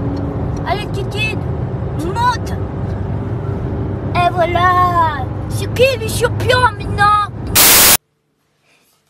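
A young woman sings loudly and dramatically, close by.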